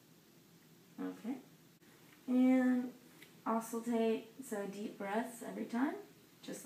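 A young woman speaks calmly and clearly up close.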